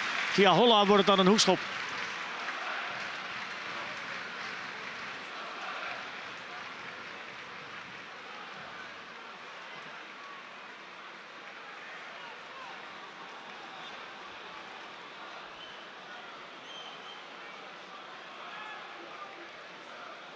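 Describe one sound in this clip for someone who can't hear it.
A large stadium crowd murmurs and chants in the distance.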